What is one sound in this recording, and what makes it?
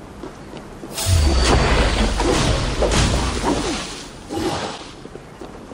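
A fire bursts and roars.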